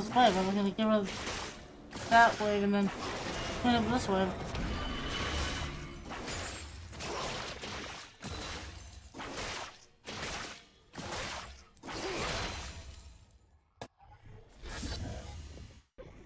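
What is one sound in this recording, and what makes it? Game sound effects of spells and hits burst and crackle.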